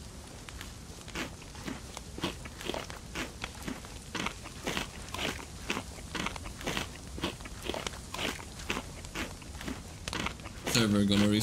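Footsteps crunch steadily through snow.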